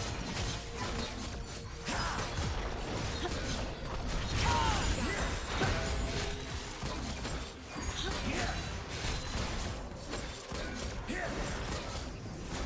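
Magic blasts whoosh and crackle as fighters clash.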